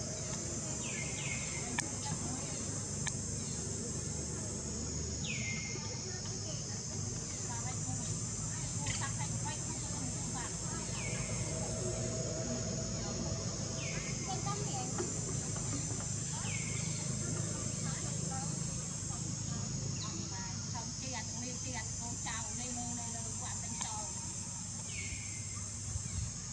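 A baby monkey squeaks in short, high cries.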